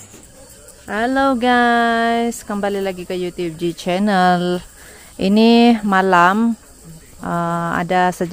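A man calls out loudly outdoors at night.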